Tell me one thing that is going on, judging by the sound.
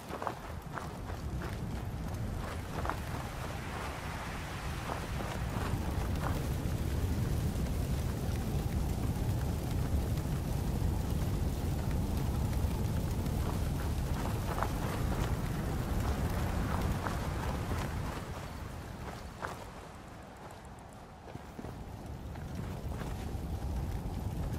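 Footsteps crunch on gravel and dry ground.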